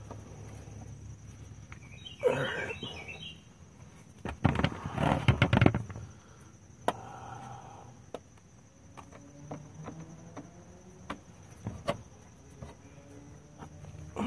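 A screwdriver clicks and scrapes against a metal hose clamp.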